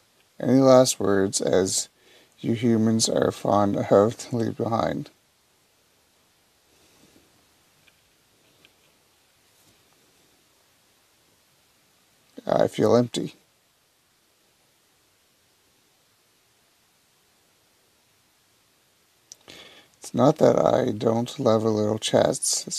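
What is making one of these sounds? A man reads aloud with animation, close to a microphone.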